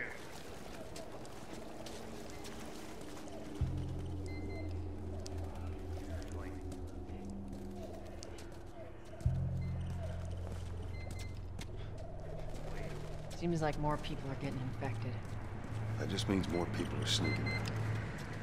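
Footsteps crunch on pavement.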